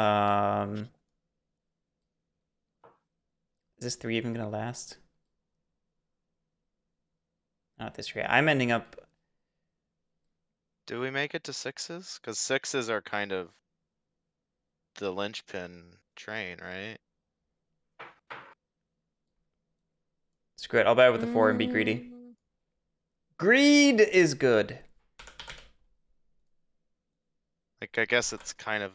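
A young man talks calmly into a close microphone, in short bursts with pauses.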